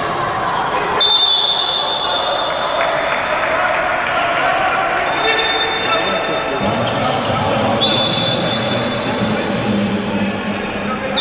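A referee's whistle blows in long shrill blasts.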